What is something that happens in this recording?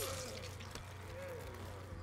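A heavy blow lands with a wet, fleshy thud.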